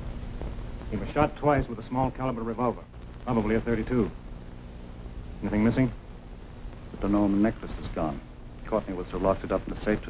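A middle-aged man speaks firmly and close by.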